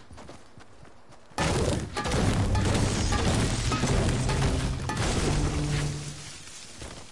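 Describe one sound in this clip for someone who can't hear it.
A pickaxe repeatedly strikes wood with hollow knocks.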